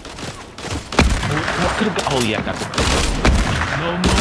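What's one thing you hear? A rifle fires sharp shots.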